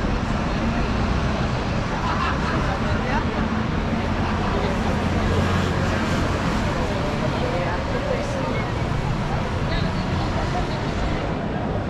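A crowd of passers-by murmurs and chatters nearby.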